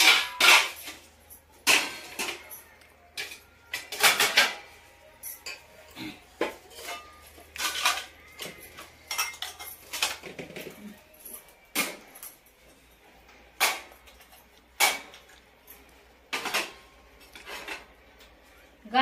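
Steel dishes clatter and clank as they are stacked.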